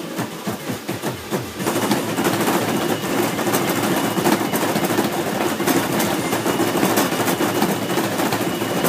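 Loud electronic dance music plays from an arcade machine's speakers.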